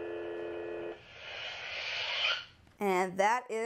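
A toy lightsaber powers down with a crackling hiss.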